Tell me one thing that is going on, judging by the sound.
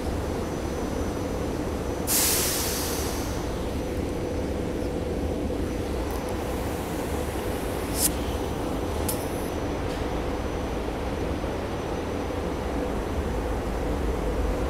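A train idles with a steady low hum.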